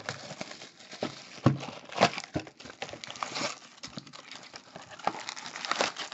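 Cardboard flaps scrape as a box is opened.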